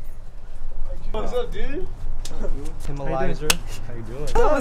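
Young men talk casually outdoors nearby.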